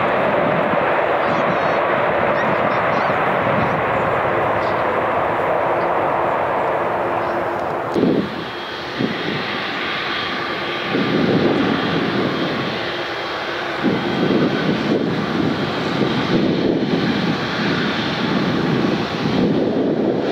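Jet engines roar loudly and steadily as an airliner rolls down a runway.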